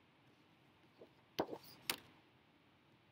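A sheet of paper rustles and flaps.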